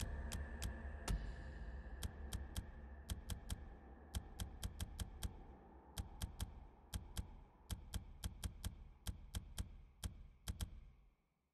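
Short menu clicks tick in quick bursts as options are scrolled.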